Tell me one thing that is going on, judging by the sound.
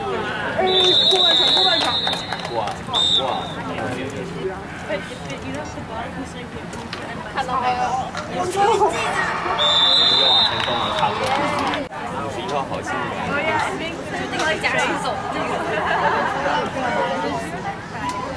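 Players and spectators shout and cheer outdoors.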